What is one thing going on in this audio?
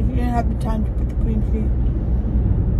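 A young woman sings a few short notes close by.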